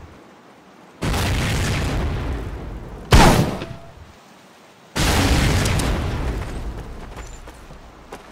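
Mortar shells explode with deep booms that roll away.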